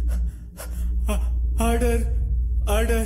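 A man shouts in anguish, close by.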